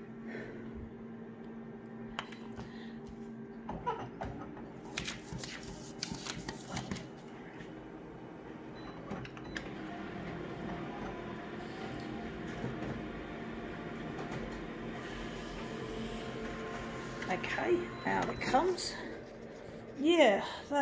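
A copier hums steadily.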